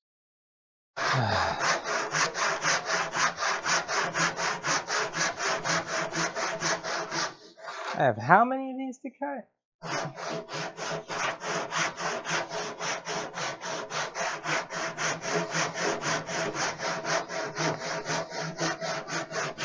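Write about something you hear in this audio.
A hand plane shaves wood in quick, regular strokes.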